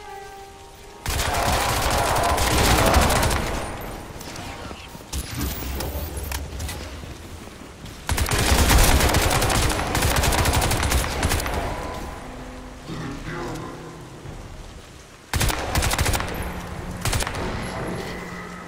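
A rifle fires loud shots in bursts.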